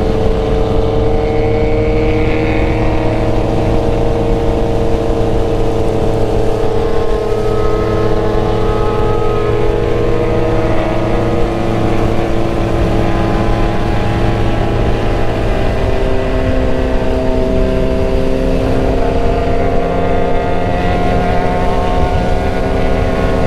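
A motorcycle engine hums steadily at speed, its pitch drifting slowly.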